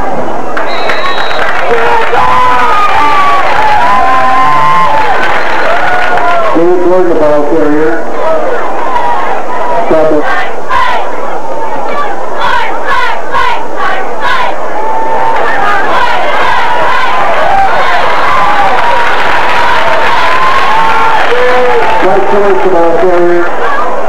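A large crowd outdoors cheers and shouts throughout.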